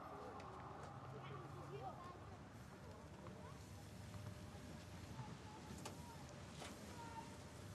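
A wheelchair rolls along a hard walkway.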